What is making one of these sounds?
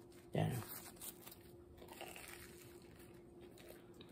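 A middle-aged man bites into a bread roll.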